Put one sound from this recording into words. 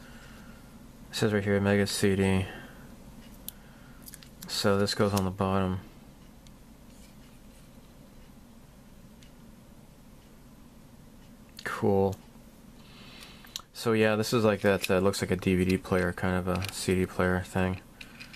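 Small plastic parts click and tap as they are handled.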